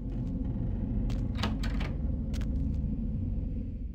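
A metal door creaks open.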